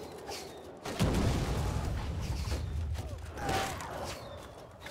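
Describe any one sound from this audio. Cannons boom in the distance.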